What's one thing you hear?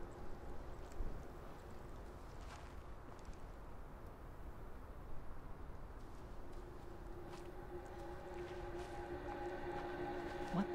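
Footsteps crunch slowly on a forest floor.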